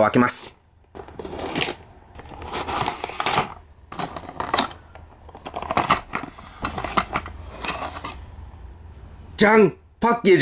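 Plastic packaging crinkles and rustles as it is opened.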